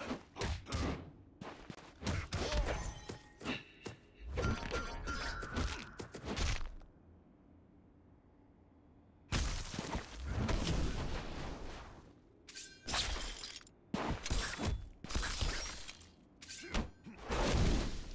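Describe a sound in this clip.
Punches and kicks land with heavy thuds in a video game fight.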